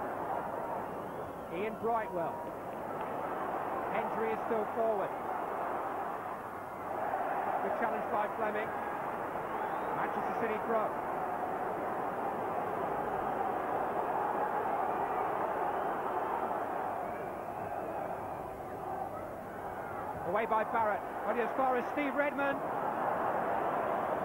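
A large crowd roars and chants steadily outdoors.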